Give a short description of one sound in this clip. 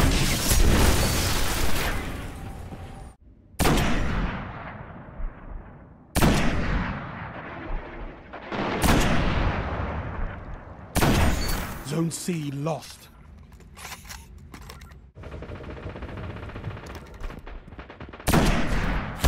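Gunshots fire in a video game.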